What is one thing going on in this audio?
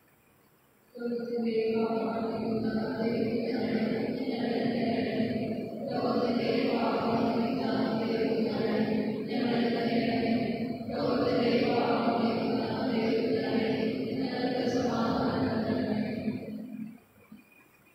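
A man chants in a steady, melodic voice through a microphone.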